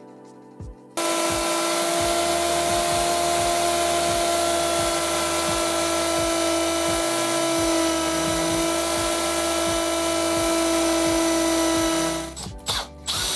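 A handheld power tool hums steadily.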